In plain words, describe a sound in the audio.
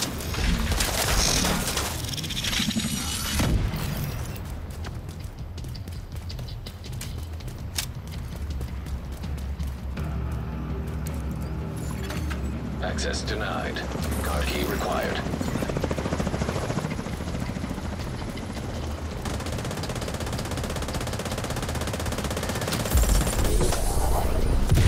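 Heavy footsteps run quickly over hard ground.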